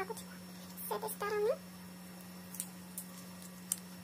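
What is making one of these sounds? A plastic clip clicks shut.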